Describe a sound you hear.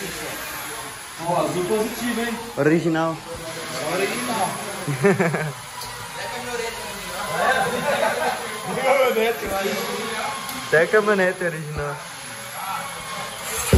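Men talk with each other nearby.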